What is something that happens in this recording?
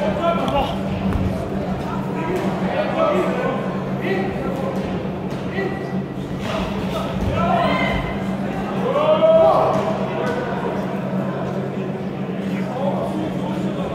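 A crowd of spectators shouts and cheers in a large echoing hall.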